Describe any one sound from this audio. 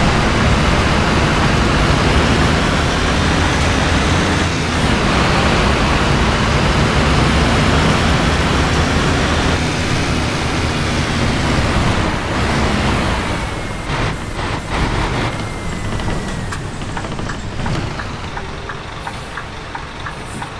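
Heavy rain patters on the windscreen.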